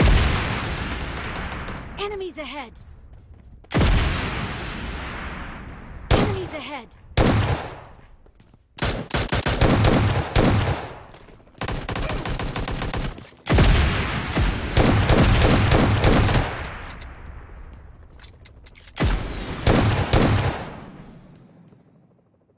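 Gunshots crack in loud bursts that ring out and fade.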